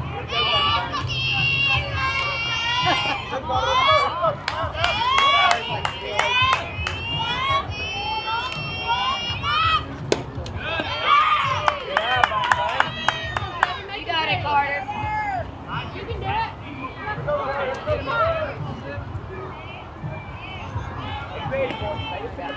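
Young girls shout and cheer excitedly outdoors.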